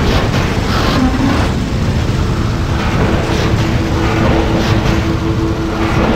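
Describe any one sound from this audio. Fire crackles.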